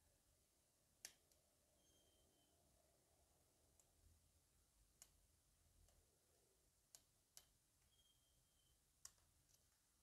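A small metal pick clicks faintly inside a lock.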